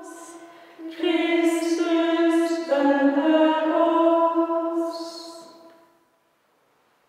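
A small group of women sing a chant together in an echoing room.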